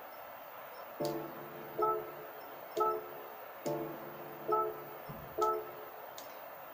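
Short electronic menu chimes play from a television speaker.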